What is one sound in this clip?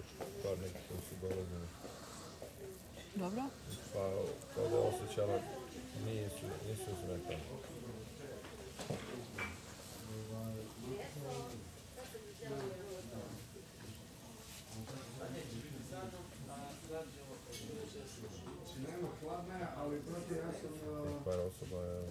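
Young women talk quietly nearby.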